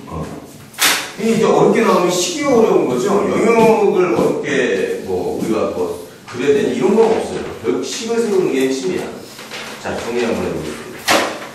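A man speaks with animation, as if lecturing, in a room with some echo.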